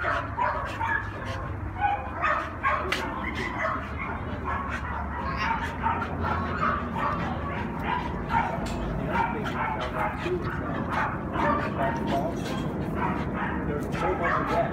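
A dog growls playfully.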